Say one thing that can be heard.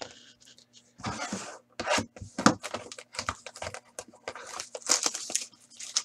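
A foil card pack crinkles and tears.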